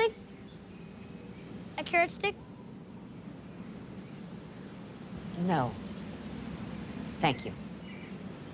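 A middle-aged woman speaks calmly.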